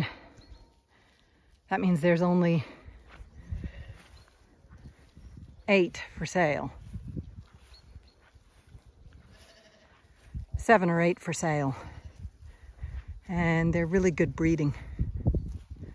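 Sheep tear and munch grass close by.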